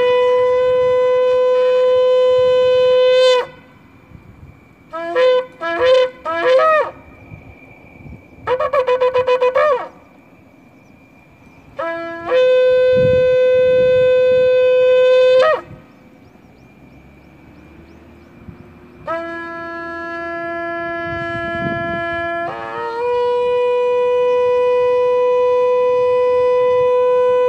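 A trumpet plays long held notes with short quick phrases between them, with pauses in between.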